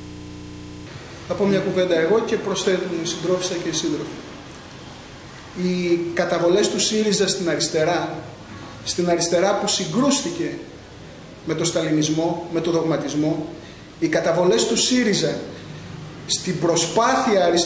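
A middle-aged man speaks calmly into a microphone, with short pauses.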